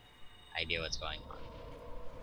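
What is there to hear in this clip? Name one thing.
A magical burst swells with a bright ringing whoosh.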